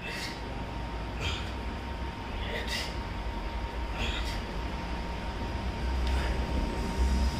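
A man breathes out sharply with each push-up.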